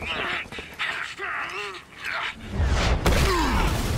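Heavy metal bodies thud and clang as they grapple.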